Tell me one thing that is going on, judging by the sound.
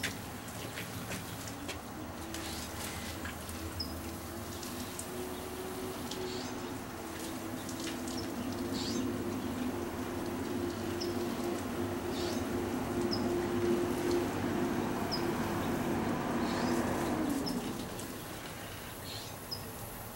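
Water sprays from a garden hose and patters onto leaves.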